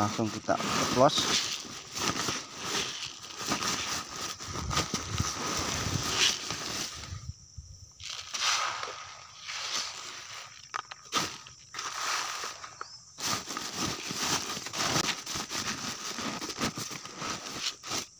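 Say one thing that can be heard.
A plastic sack rustles and crinkles.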